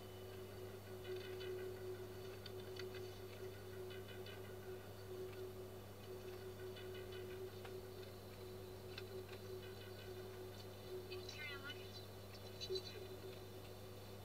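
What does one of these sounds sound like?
A young woman speaks pleasantly, heard through a loudspeaker.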